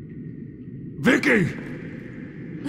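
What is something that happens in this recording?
A man calls out loudly in a deep voice.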